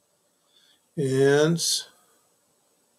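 A middle-aged man speaks briefly and calmly close to a microphone.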